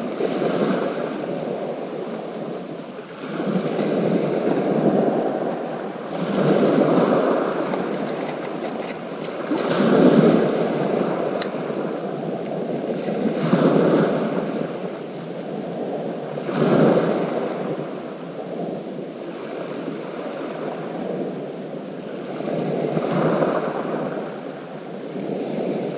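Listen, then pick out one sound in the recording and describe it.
Small waves break and wash over a shingle beach.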